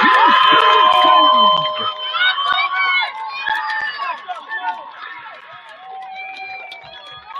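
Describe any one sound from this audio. A crowd of young people cheers and screams outdoors, loudest at first and then fading.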